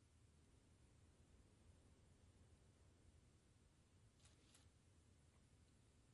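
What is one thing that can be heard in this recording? Footsteps fall softly on a carpeted floor.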